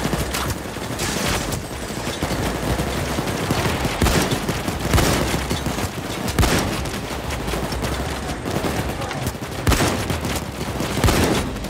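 Gunshots crack sharply now and then.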